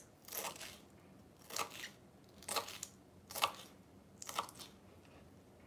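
A knife chops through vegetables on a wooden board with soft, regular taps.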